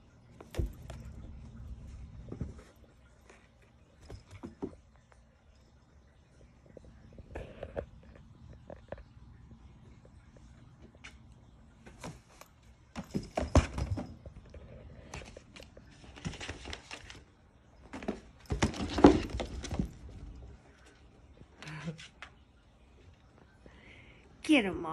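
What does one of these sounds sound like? Cats scuffle and scratch against a cardboard box in short rustling bursts.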